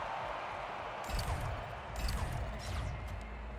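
Heavy footsteps thud on a hard metal floor.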